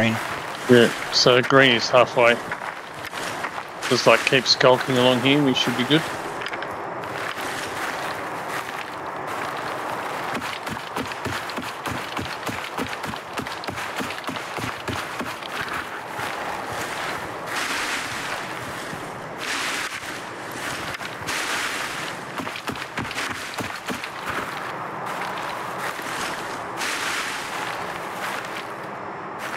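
Footsteps rustle through grass and brush.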